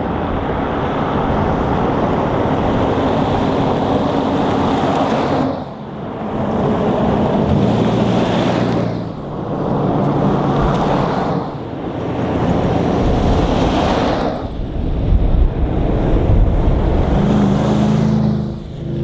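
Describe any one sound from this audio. Heavy vehicle engines roar loudly up close as the vehicles drive past one after another.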